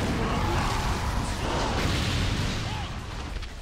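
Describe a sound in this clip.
A fiery explosion booms and roars.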